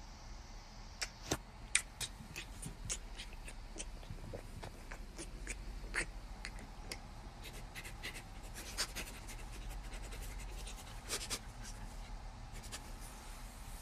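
A man softly kisses a woman's face with quiet smacking sounds.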